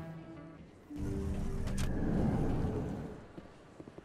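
A heavy sliding door whooshes open.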